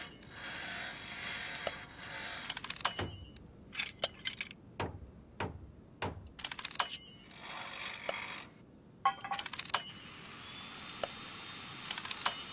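Electronic clicks and blips sound from a game menu.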